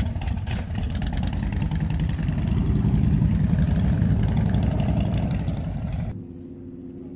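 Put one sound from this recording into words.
Motorcycle engines rumble loudly nearby.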